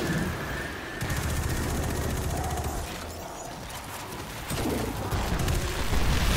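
A gun fires rapid shots with sharp bangs.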